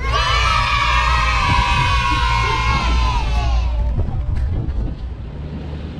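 A motorboat engine roars over rushing water.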